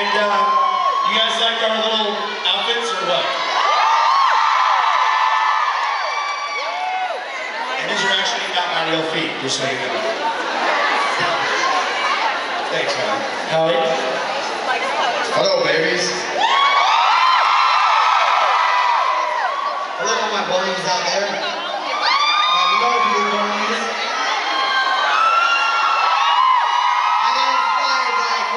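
A crowd sings along loudly.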